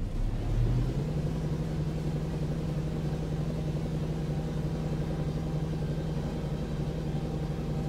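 A steady low hum sets in as a spaceship begins landing.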